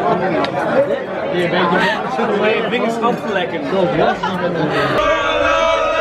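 Several young men talk with animation close by.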